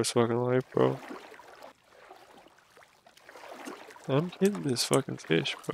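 Water splashes softly with each wading step.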